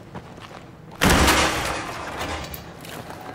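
A heavy door bursts open with a loud bang.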